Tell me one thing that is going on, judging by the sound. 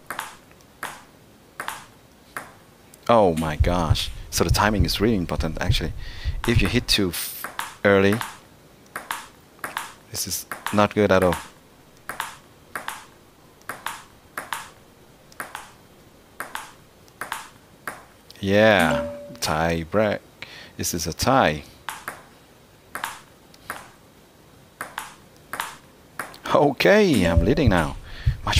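A table tennis ball clicks back and forth off paddles and the table in quick sharp taps.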